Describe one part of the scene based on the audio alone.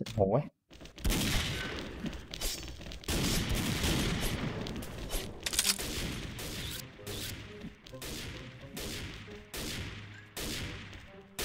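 Loud gunshots boom and echo.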